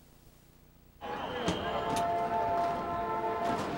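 Traffic hums along a busy city street.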